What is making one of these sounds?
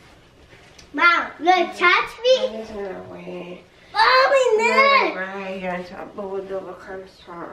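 A small child talks and squeals.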